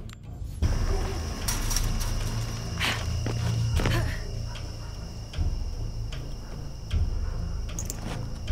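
Hands and feet scramble up a wooden wall with scraping thuds.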